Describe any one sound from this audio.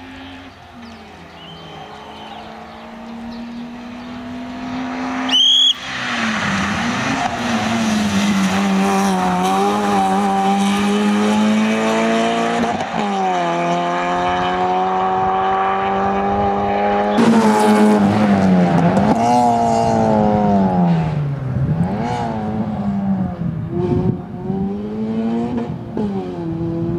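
A rally car engine roars closer, revving hard and shifting gears as it races past and away.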